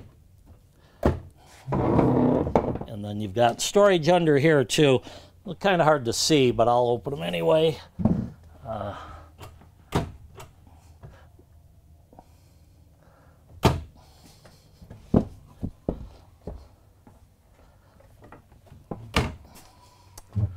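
A wooden chair knocks and scrapes on a hard floor.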